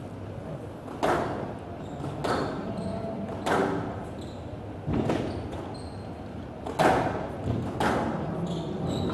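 Squash balls smack sharply against walls and rackets in an echoing court.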